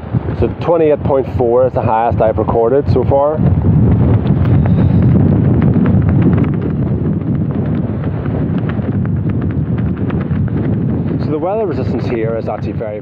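Strong wind gusts roar across open ground outdoors.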